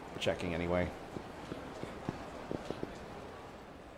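Footsteps hurry along a hard pavement.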